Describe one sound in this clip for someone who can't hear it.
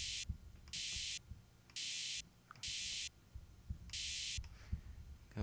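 A game menu hisses in short bursts.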